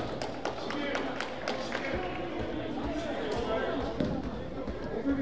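Young players call out to each other in an echoing gym.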